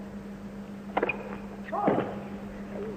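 A tennis ball bounces a few times on a hard court.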